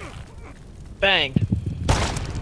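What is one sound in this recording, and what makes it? A pistol shot cracks loudly.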